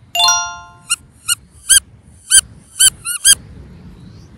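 A rubber toy squeaks as it is squeezed.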